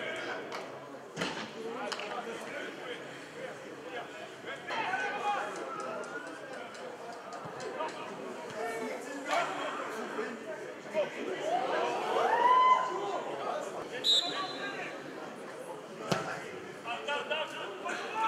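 Men shout to each other across a large open pitch.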